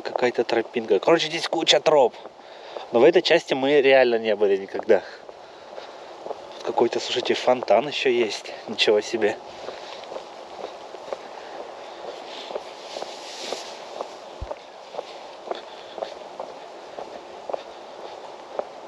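Rain patters steadily on leaves and wet paving outdoors.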